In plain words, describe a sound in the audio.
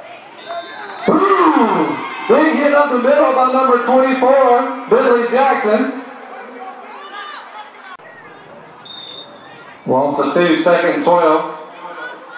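Spectators cheer and shout loudly.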